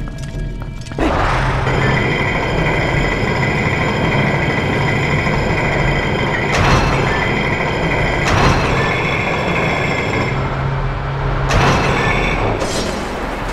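A spinning top whirs and grinds steadily along a metal rail.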